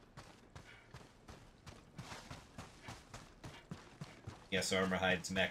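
Footsteps crunch rapidly on snow.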